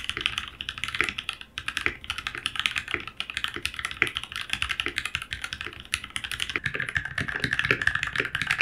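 Keys on a mechanical keyboard clack rapidly as someone types.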